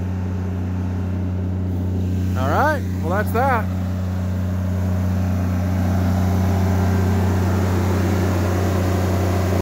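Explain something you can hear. A generator engine hums steadily, growing louder up close.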